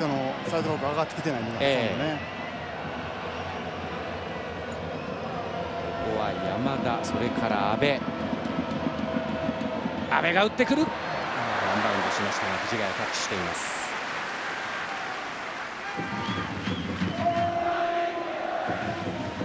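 A large stadium crowd chants and cheers steadily.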